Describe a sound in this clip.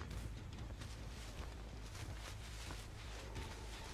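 Tall plants rustle as someone pushes through them.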